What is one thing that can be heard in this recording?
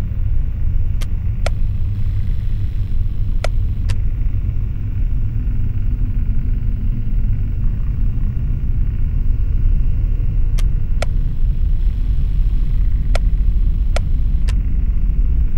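Sharp mechanical clicks sound now and then.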